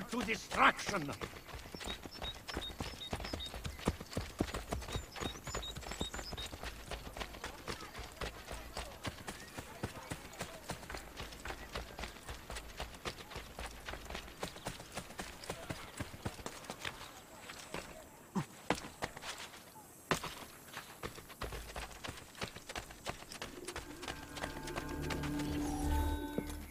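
Quick footsteps run over ground at a steady pace.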